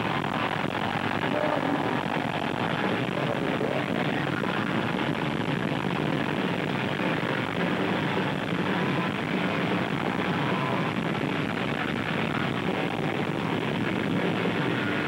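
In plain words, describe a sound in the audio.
A rock band plays loudly on stage, heard distorted from within a large crowd.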